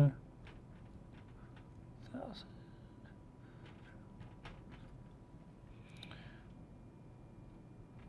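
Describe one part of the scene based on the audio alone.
A marker squeaks faintly as a man writes on a glass board.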